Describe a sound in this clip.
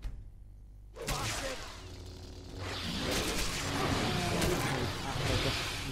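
Weapons clash and strike in a noisy fight.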